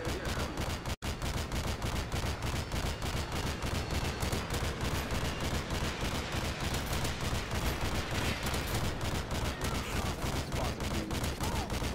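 A heavy cannon fires in rapid bursts.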